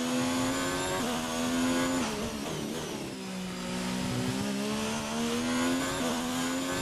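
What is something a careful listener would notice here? A racing car engine screams at high revs, dropping as gears change down and climbing again.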